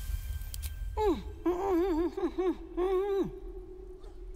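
A young girl speaks with a sing-song voice, close by.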